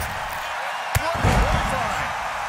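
A body slams hard onto a wrestling mat with a heavy thud.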